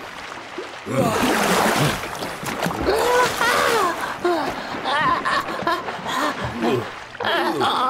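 Cartoon children's voices chatter and squeal with animation.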